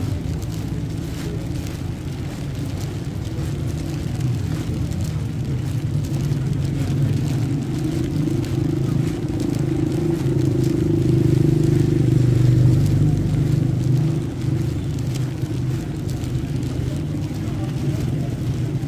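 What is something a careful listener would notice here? Footsteps splash on wet pavement.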